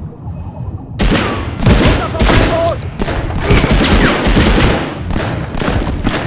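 A rifle fires repeated loud shots.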